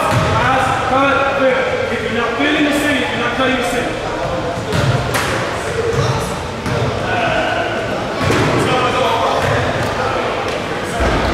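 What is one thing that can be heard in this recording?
Young girls chatter and shout in a large echoing hall.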